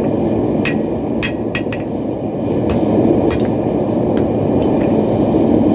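A hammer strikes metal on an anvil with sharp ringing clangs.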